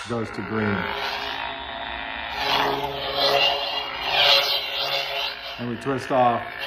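A lightsaber hilt hums and whooshes electronically.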